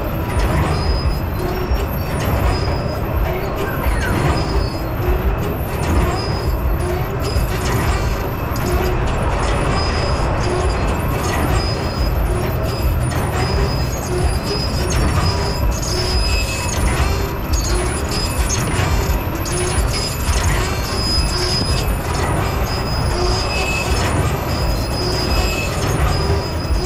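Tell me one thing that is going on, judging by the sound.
A carnival ride rumbles and whirs steadily as it spins.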